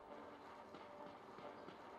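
Small footsteps patter softly on a hard surface.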